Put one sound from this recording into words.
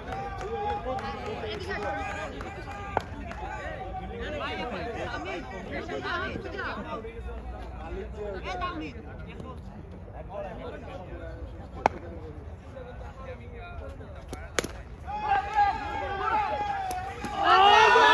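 Young men talk and call out across an open outdoor space.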